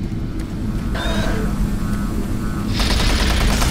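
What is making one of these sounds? A monster growls.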